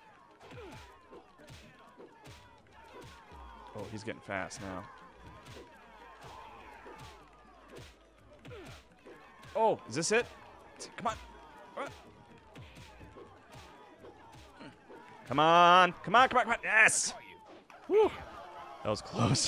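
Punches and kicks land with sharp smacks.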